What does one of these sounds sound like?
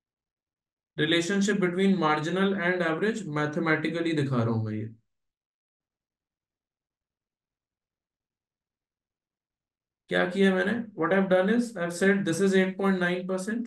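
A man speaks calmly into a close microphone, explaining.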